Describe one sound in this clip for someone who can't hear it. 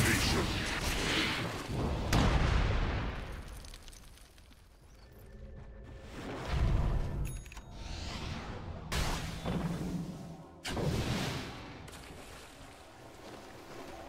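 Spells crackle and burst in a fight between game characters.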